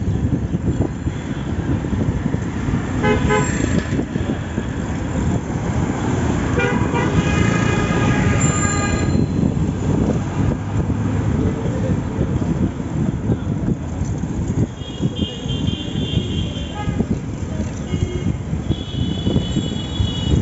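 A cycle rickshaw rattles and creaks as it rolls along.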